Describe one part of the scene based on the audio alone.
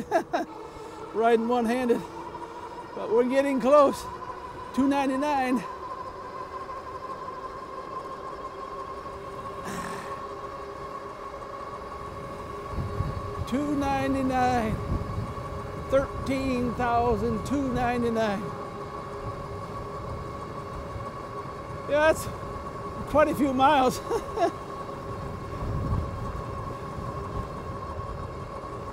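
Wind rushes past while riding at speed.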